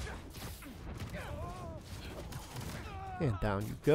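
Heavy punches and blows land with dull thuds.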